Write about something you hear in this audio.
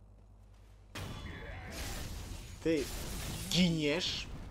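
A sword slashes and strikes with a sharp hit.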